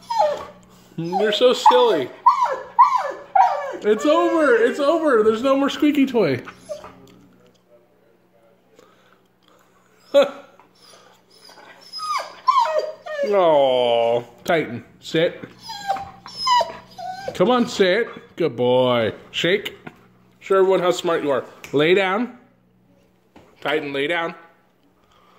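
A dog howls and yowls close by in long, wavering, rising and falling cries.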